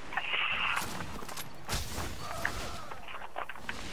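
A rifle fires a few shots in a video game.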